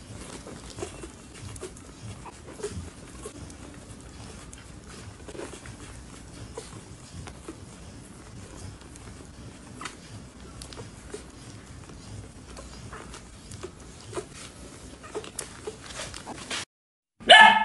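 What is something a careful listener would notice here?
Newborn puppies squeak and suckle softly.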